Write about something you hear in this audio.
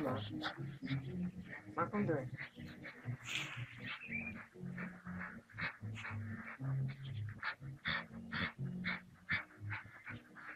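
A small dog barks at close range.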